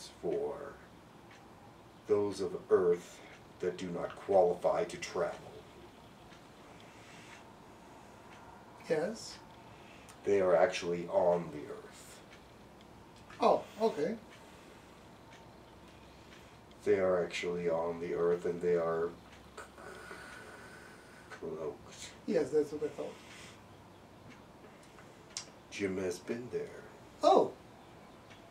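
A man speaks calmly nearby, in pauses.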